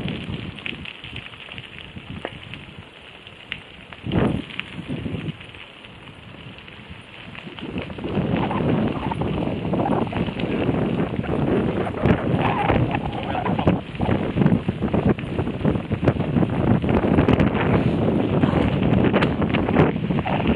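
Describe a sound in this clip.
Bicycle tyres roll along a paved path.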